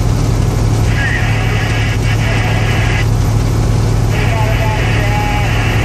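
Tyres roar on a highway, heard from inside a bus.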